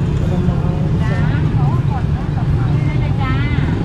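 A woman talks with a vendor close by.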